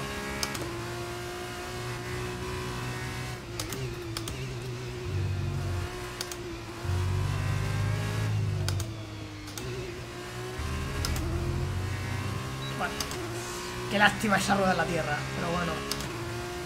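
A racing car engine whines steadily, its pitch rising and falling with gear changes.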